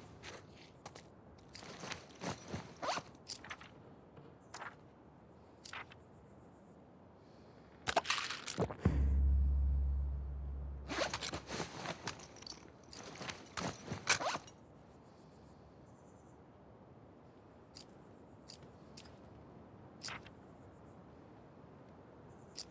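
Short soft clicks and ticks sound one after another.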